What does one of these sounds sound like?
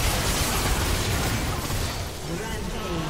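Game spells and explosions crackle and burst in a busy fight.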